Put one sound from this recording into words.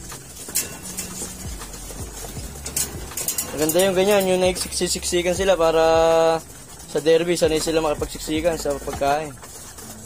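Pigeons flap their wings close by.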